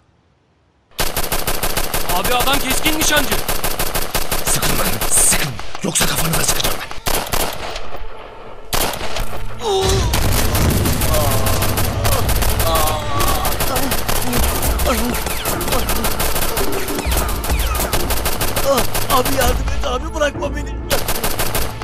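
Gunshots crack in rapid bursts outdoors.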